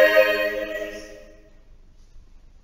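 A choir's last sung chord rings out and fades away in a large echoing hall.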